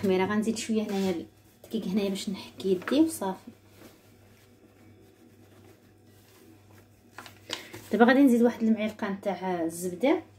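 Hands knead sticky dough in a bowl with soft squelching.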